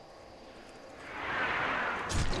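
A magic spell swells with a bright, rushing shimmer.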